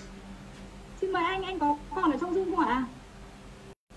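A woman speaks animatedly over an online call.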